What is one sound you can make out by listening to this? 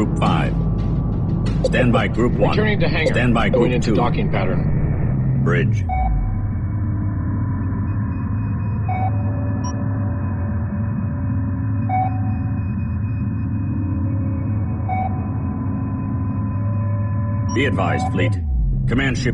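Spaceship engines roar and whoosh past.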